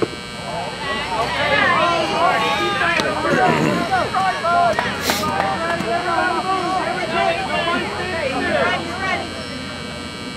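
A crowd of young players and spectators cheers and shouts outdoors.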